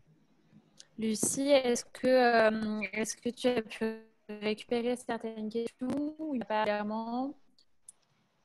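A young woman speaks steadily and clearly over an online call.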